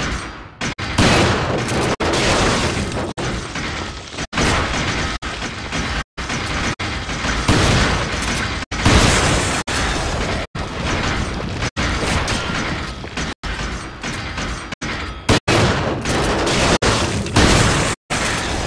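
A shotgun fires loud blasts that echo.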